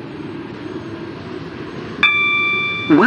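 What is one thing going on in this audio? A train rumbles along the rails.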